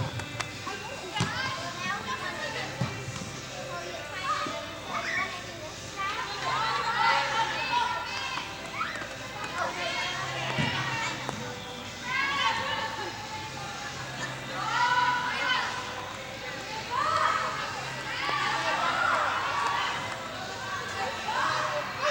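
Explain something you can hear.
Young women shout and call out across a large echoing hall.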